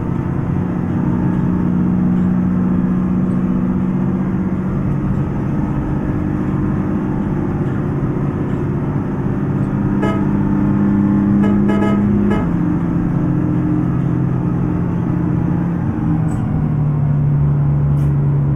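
A bus engine hums steadily, shifting pitch as the bus changes speed.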